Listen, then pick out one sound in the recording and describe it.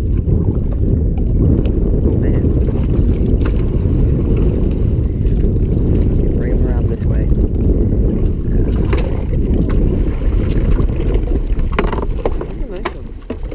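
Waves slap against a small boat's hull.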